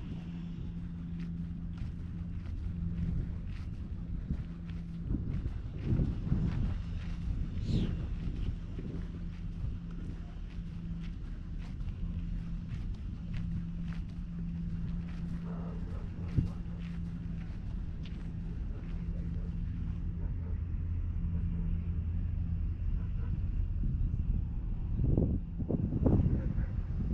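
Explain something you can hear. Wind gusts across open ground outdoors.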